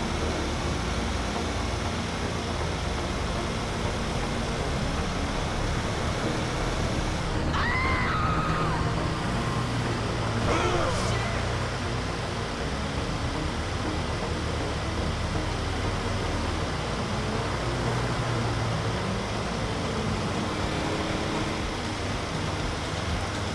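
A motorcycle engine drones while cruising at speed.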